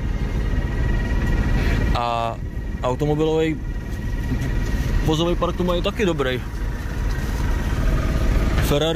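A car engine idles nearby with a low rumble.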